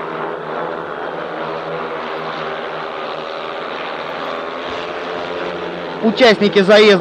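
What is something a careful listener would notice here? Motorcycle engines roar as riders race around a dirt track.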